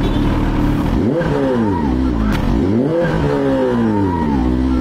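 A motorcycle engine revs up and down several times.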